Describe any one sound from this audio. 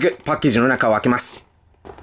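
A blade scrapes across tape on a cardboard box.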